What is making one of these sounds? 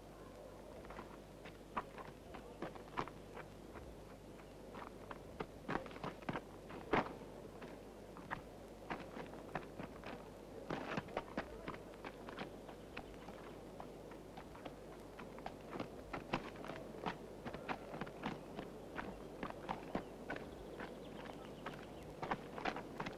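Footsteps run quickly over dry dirt and gravel.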